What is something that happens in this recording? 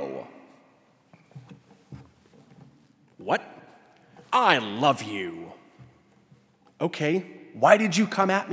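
A man speaks with animation through a microphone, with pauses, in an echoing hall.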